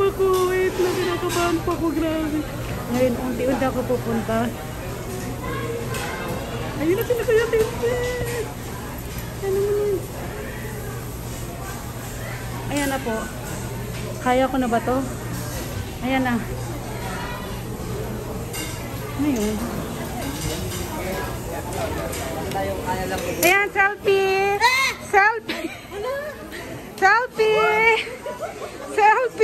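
Many people chatter in a busy, echoing dining room.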